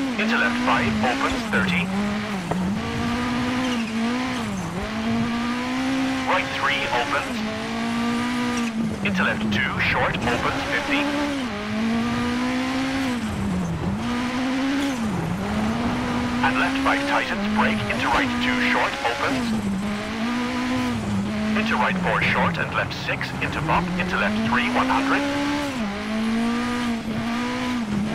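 A rally car engine revs hard, rising and falling as it shifts gears.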